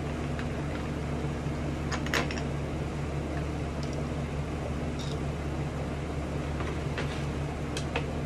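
Small items tap and click against a hard tabletop.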